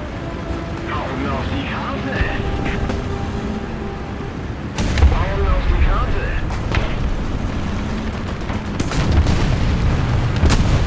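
A tank engine rumbles low and steady.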